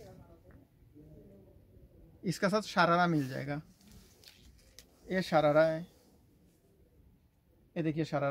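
Clothes rustle as a dress is handled.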